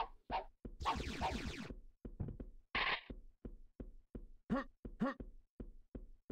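Heavy footsteps thud steadily on stone.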